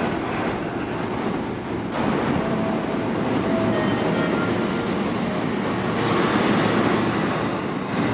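A train rumbles past on the tracks.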